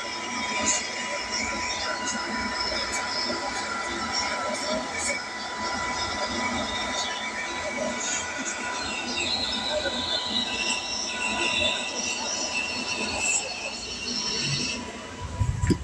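A large crowd cheers and roars through a television speaker.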